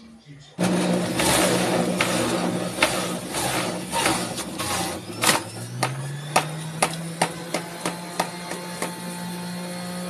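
Fruit crunches and grinds in a juicer, with sharp knocks.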